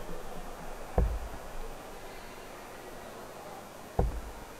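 Darts thud sharply into a dartboard.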